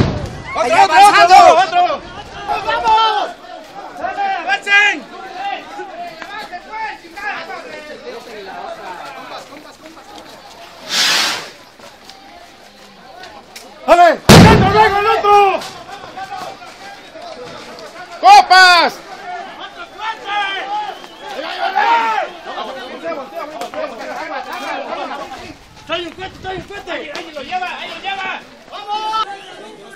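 Men shout excitedly nearby outdoors.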